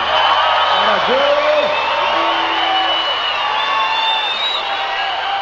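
People in a large crowd whistle shrilly.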